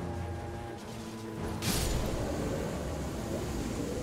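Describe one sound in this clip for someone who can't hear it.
A blade slashes with a sharp swish.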